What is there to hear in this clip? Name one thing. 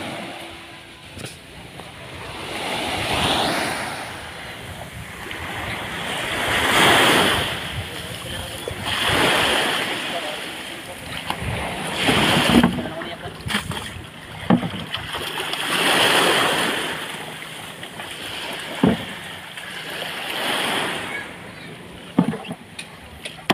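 Small waves wash onto a sandy shore in slow, repeated swells.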